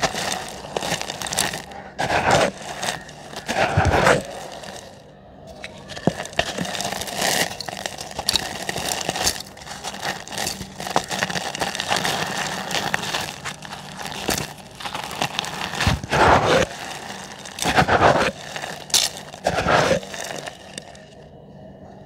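Hands crush dry cement blocks, which crumble and crunch.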